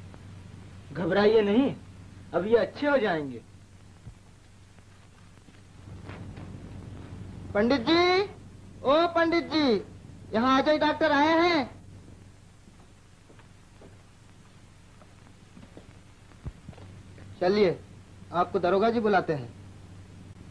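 A man speaks in short, loud, emphatic phrases with pauses between them.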